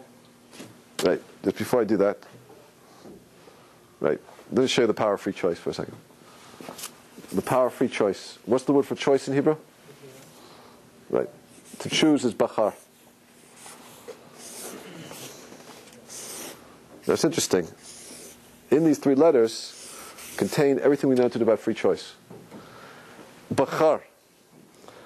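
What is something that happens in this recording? A man speaks calmly and clearly, as if teaching.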